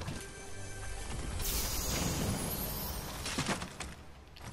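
A treasure chest bursts open with a bright magical shimmer.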